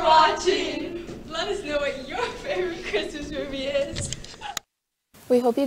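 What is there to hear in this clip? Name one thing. Teenage girls chatter and laugh close by.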